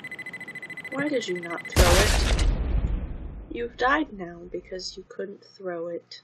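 A young woman speaks into a headset microphone.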